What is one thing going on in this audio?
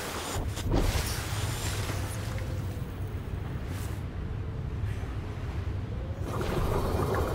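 Gentle waves lap in open air.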